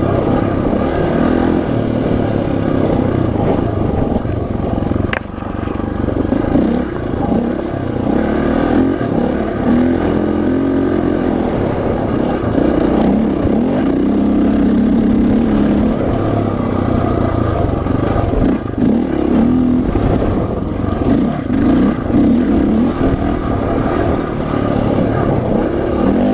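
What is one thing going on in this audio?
A dirt bike engine revs and drones up close, rising and falling.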